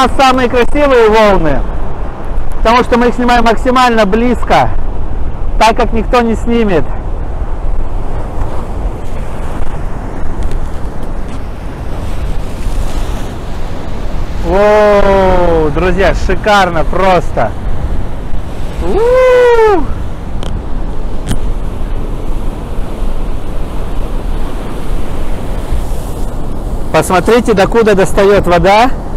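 Waves crash and roar against rocks, steady and loud.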